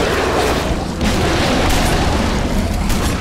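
An energy blast crackles and fizzes.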